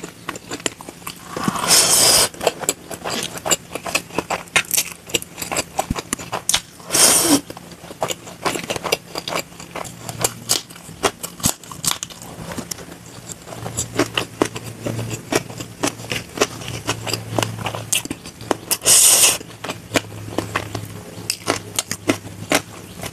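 Crispy food crunches and rustles as fingers grab it.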